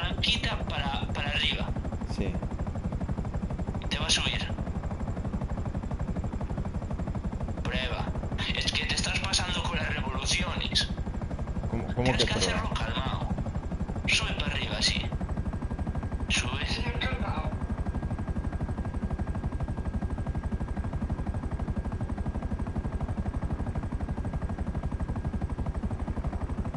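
A helicopter engine and rotor drone steadily and closely.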